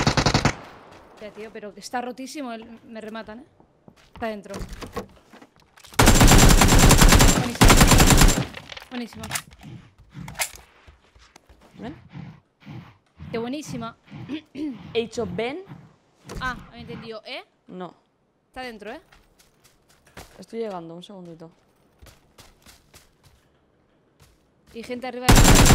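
A young woman talks through a headset microphone.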